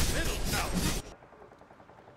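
Weapons clash and magic blasts crackle in a fight.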